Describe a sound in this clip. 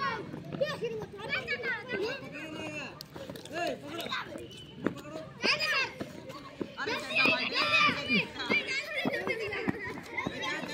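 Children shout and cheer excitedly outdoors.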